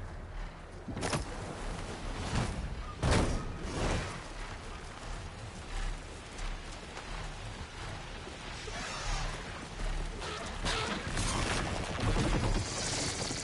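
Large wings beat with heavy whooshes.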